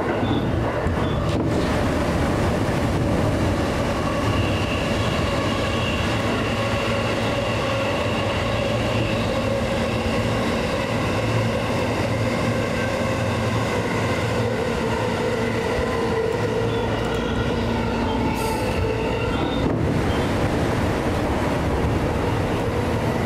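A train's motor hums with a steady whine.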